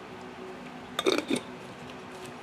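A metal lid is screwed onto a glass jar.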